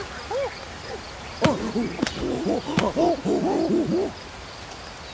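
Chimpanzees hoot and chatter excitedly.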